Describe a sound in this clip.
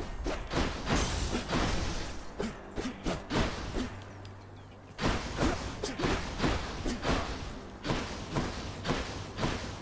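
Electric zaps and magic blasts crackle in quick bursts.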